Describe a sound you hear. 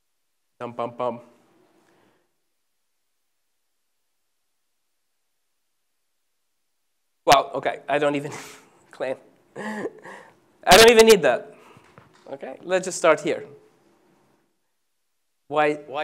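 A man lectures through a microphone, pausing between phrases.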